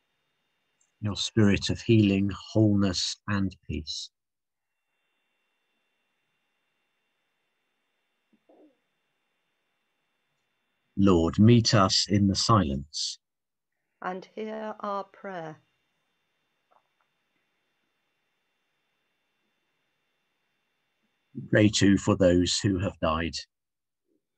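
A man reads out calmly, heard over an online call.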